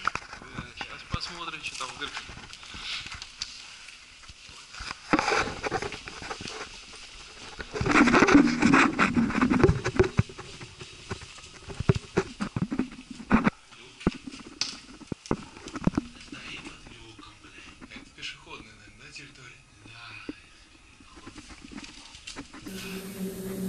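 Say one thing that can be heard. Footsteps scrape and shuffle through a narrow echoing pipe.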